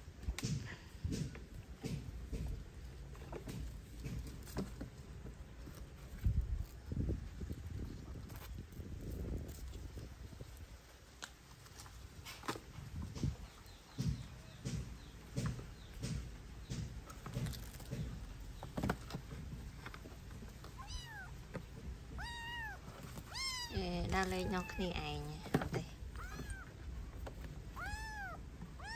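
Dry leaves and twigs rustle as a small monkey scrambles over them.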